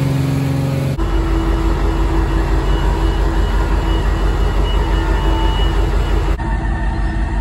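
A large diesel engine idles with a deep, steady rumble.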